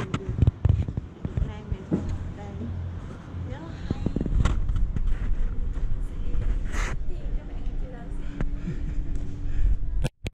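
A young woman talks cheerfully close to the microphone.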